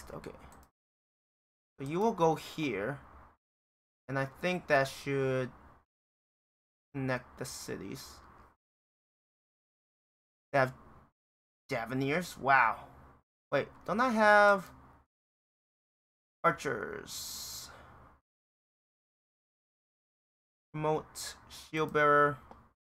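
A man speaks into a microphone in short bursts with pauses between them.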